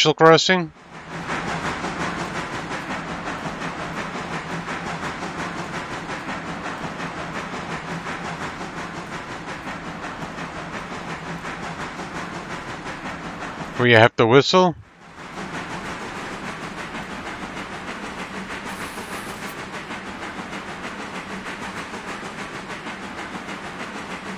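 A steam locomotive chuffs steadily along the track.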